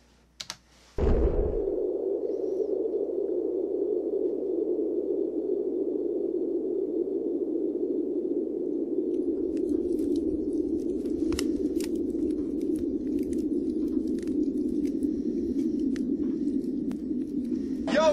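A fire roars steadily.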